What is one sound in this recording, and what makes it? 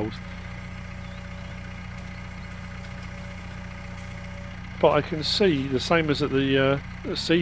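A tractor loader's engine hums steadily.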